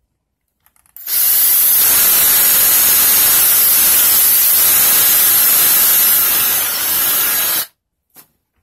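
An electric drill whirs steadily as it bores through plastic.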